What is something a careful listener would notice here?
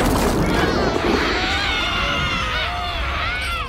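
A man screams harshly through a mask.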